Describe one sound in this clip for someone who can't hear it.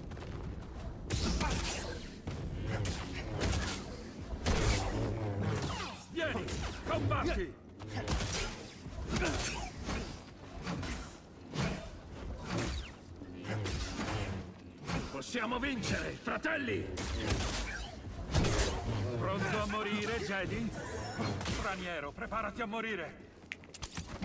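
Light sabers clash with sharp crackling hits.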